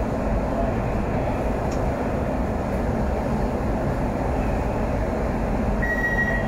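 A train's machinery hums and rumbles steadily.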